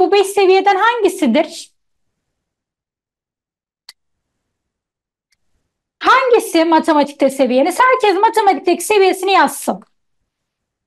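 A young woman speaks with animation into a microphone, heard as in an online call.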